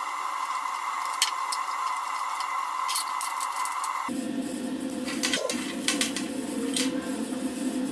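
Metal tools clink and tap against each other.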